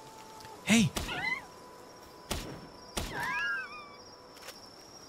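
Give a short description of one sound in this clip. A small creature lets out high, squeaky cries.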